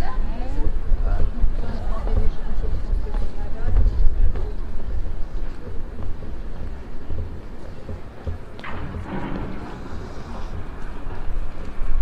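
Wind blows outdoors, rumbling steadily.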